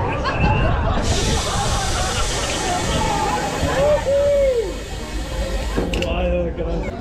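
A ride's brakes let out a loud, steady hiss.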